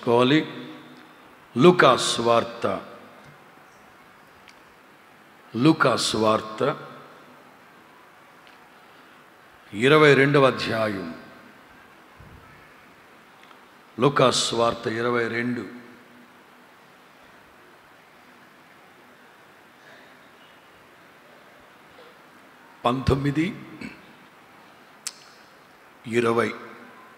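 A man preaches with animation into a microphone, in short bursts with pauses.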